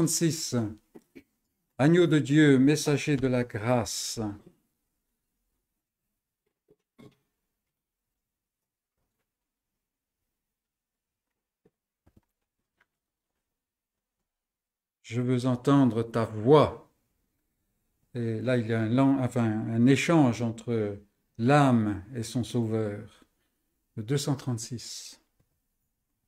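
An elderly man speaks calmly and close by, with long pauses.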